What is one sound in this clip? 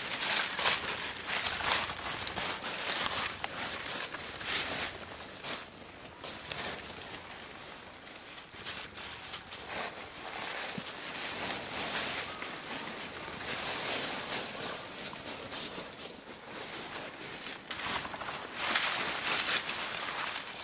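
Dry leaves rustle and crunch as an animal roots and walks through them.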